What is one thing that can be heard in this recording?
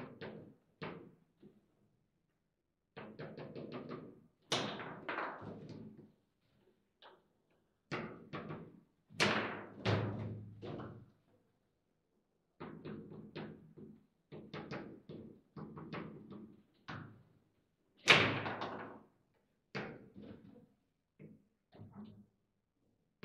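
A foosball ball knocks sharply against plastic figures and the table walls.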